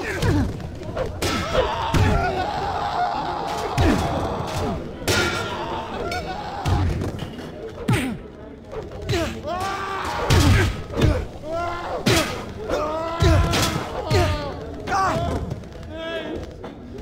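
Heavy punches and blows thud in a brawl.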